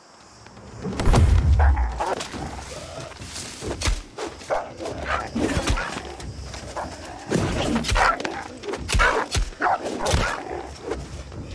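Sword blows clash and thud in a fight.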